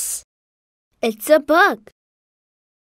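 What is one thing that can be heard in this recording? A young boy answers calmly in a friendly voice.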